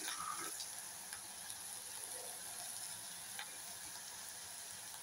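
Food sizzles softly in a pot.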